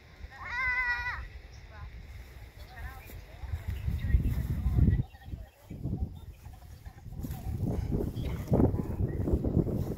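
Wind buffets outdoors in gusts.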